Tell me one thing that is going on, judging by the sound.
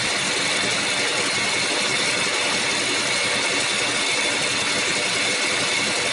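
A metal lathe runs with a steady whirring hum.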